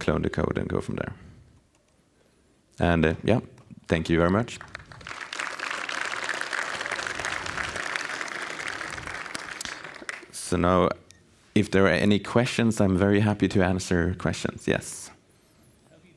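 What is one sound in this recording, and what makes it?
A young man speaks calmly into a microphone in a large hall.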